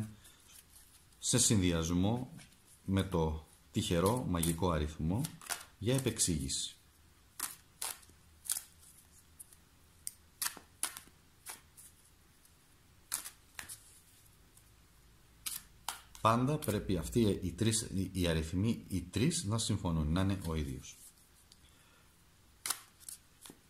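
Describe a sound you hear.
A small box taps and rattles in hands.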